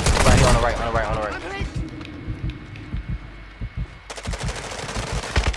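Gunfire rattles in rapid bursts nearby.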